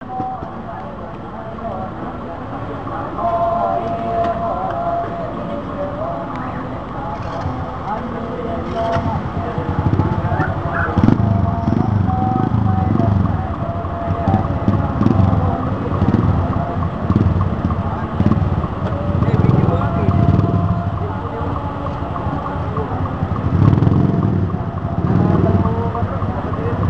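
A bus engine idles nearby.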